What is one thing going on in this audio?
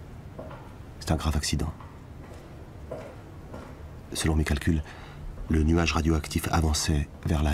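A man's footsteps echo down a long hallway.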